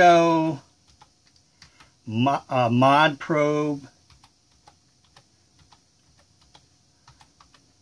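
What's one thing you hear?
Keyboard keys click softly as someone types.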